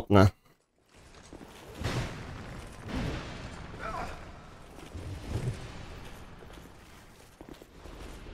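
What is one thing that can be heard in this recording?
Heavy metal weapons swing and clash.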